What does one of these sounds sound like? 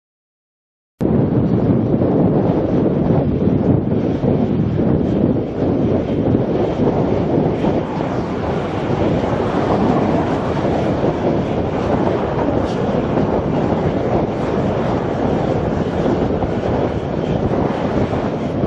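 Jet engines roar loudly as an airliner taxis past.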